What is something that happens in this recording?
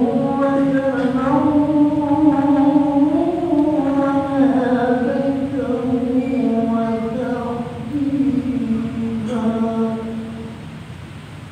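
A man chants a long melodic phrase over a loudspeaker in an echoing hall.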